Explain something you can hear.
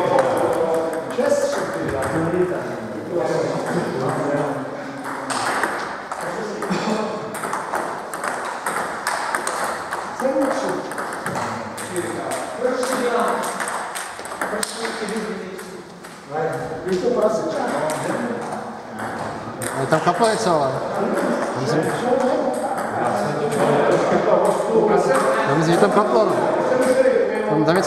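Ping pong balls click against paddles and tables in a large echoing hall.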